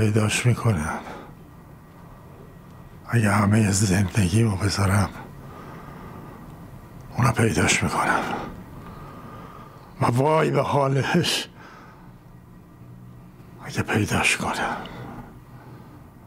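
An elderly man speaks slowly in short bursts with long pauses between them.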